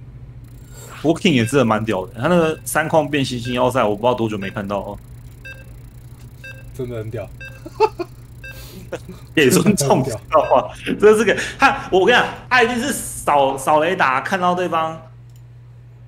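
A young man talks with animation over an online call.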